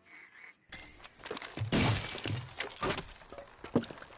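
Glass shatters as a window is smashed.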